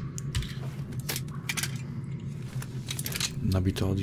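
A gun's metal parts click and clack as it is handled and reloaded.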